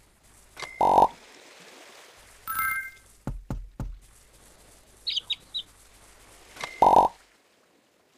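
A bright coin chime rings out.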